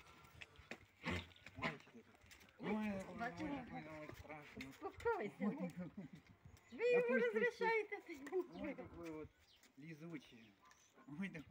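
A dog whines and yelps excitedly.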